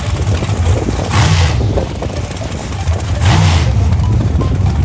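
A dragster engine revs in sharp, roaring bursts.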